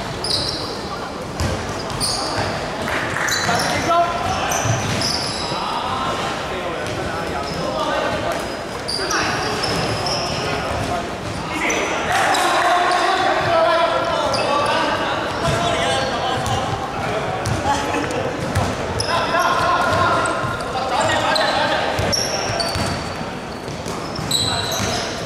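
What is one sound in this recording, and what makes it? A basketball bounces on the floor with hollow thuds.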